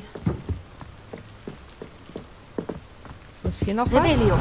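Footsteps thud quickly on wooden boards.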